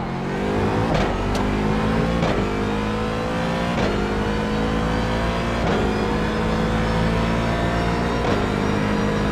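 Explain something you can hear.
A racing car shifts up through the gears with sharp clunks.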